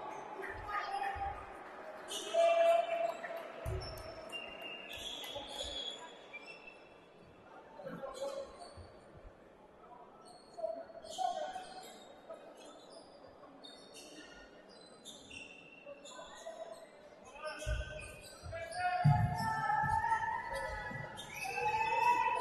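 Players and coaches shout across an echoing gym.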